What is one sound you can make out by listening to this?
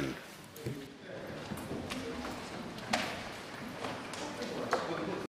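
People murmur quietly in a large echoing hall.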